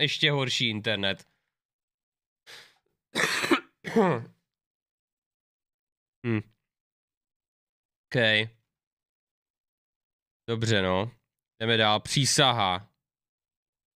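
A young man talks in bursts with animation, close to a microphone.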